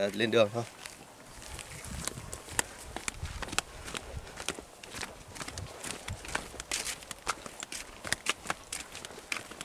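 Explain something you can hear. Footsteps scuff on a dirt path outdoors.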